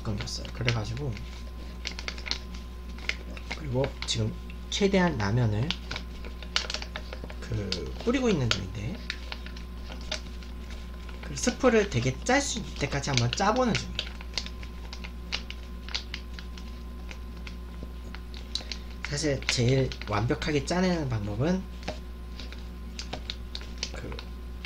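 Plastic packaging crinkles and rustles in hands.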